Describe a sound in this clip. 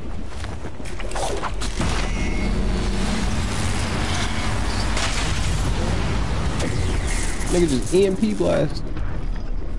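A deep rumble swells and roars.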